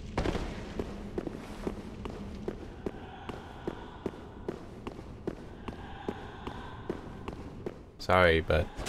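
Armoured footsteps clank steadily on stone.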